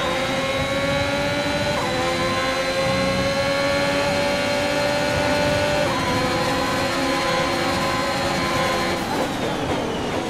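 A racing car engine screams at high revs and shifts up through the gears.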